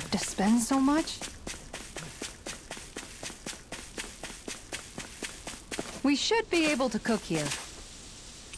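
Quick footsteps thud across grass in a steady running rhythm.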